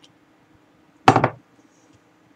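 A glass is set down on a wooden table with a knock.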